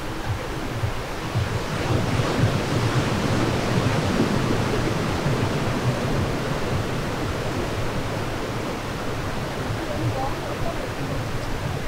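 Waves break and wash on a shore in a steady rush.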